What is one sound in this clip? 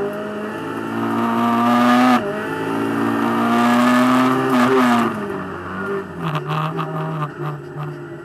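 A racing car engine roars loudly from inside the cabin, rising in pitch as it revs through the gears.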